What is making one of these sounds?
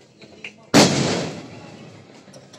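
A firework bursts with a loud bang close by.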